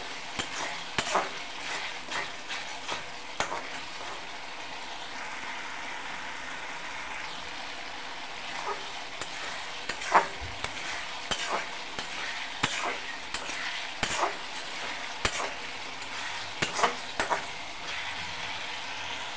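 Food sizzles and bubbles in a pan.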